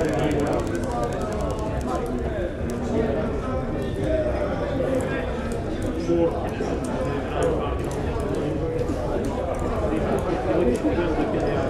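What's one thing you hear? A fire crackles.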